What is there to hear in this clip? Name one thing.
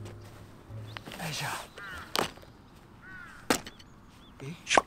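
A man speaks calmly, close by, outdoors.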